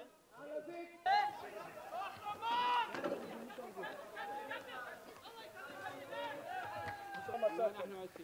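A crowd of young men shouts and yells outdoors in the distance.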